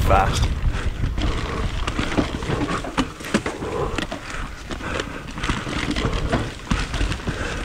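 Bike tyres roll and crunch over a dirt trail.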